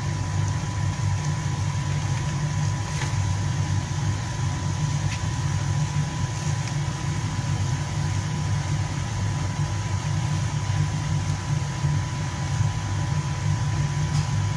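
A spoon scrapes softly as it spreads sauce over dough.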